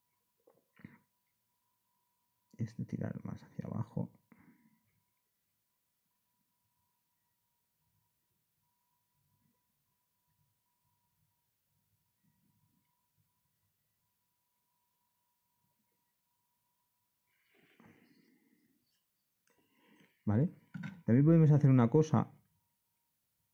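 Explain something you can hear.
A small blade scrapes softly at hardened putty.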